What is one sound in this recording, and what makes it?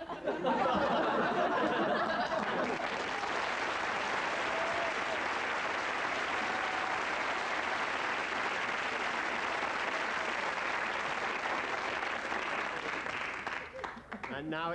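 A studio audience applauds loudly.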